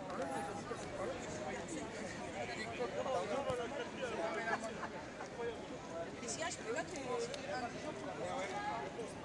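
A crowd of men and women talk all around, outdoors.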